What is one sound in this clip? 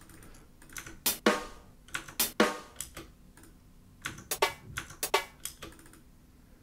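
Short, sharp drum hits play in quick bursts.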